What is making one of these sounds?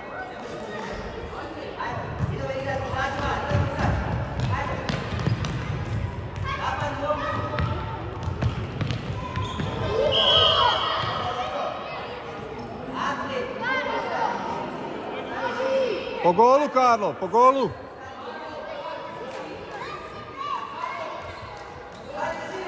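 Children shout and call out in a large echoing hall.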